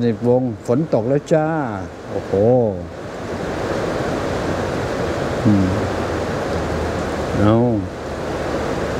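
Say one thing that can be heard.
An elderly man speaks slowly and calmly, close to a microphone.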